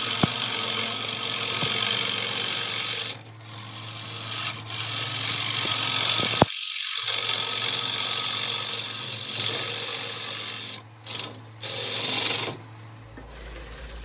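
A chisel cuts into spinning wood with a loud, rough scraping.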